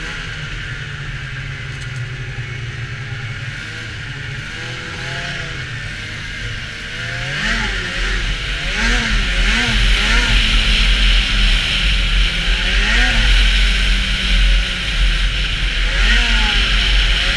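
A snowmobile engine drones steadily and revs up and down.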